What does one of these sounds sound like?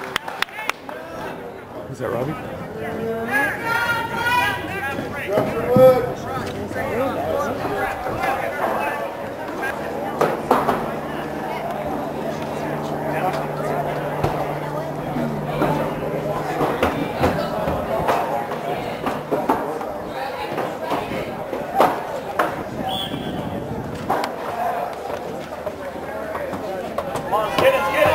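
A crowd of spectators and players chatters and shouts outdoors.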